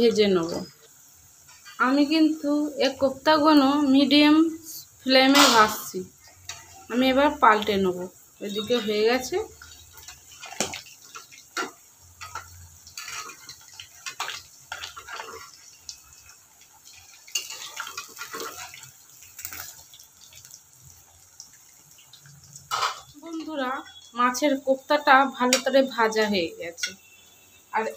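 Oil sizzles and bubbles steadily in a pan.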